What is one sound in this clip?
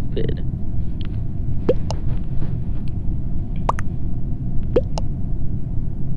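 Short game chimes pop up as chat messages arrive.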